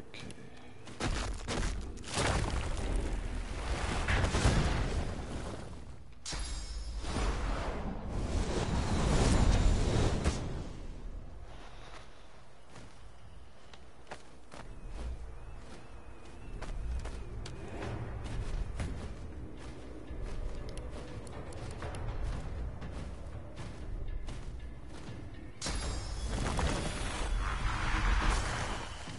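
Magical blasts and fire roar in loud bursts.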